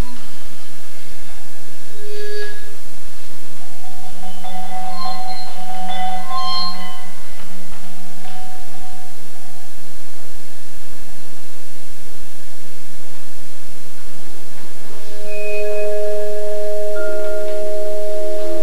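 A marimba plays ringing mallet notes in a large echoing hall.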